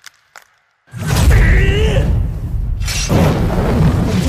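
Flames roar and whoosh loudly.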